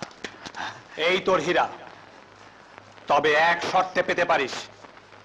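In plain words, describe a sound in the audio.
A man speaks sharply and forcefully, close by.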